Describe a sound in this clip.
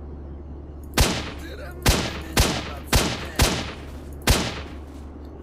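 Rifle shots crack out one after another, echoing briefly.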